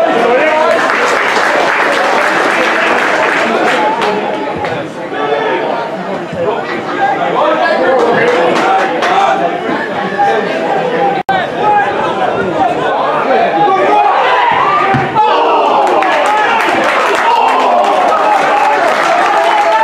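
Men on a football pitch shout to each other.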